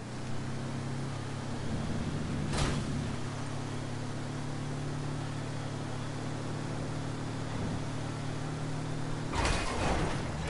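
A buggy's engine drones steadily.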